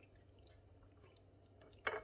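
A metal spoon scrapes food onto a plate.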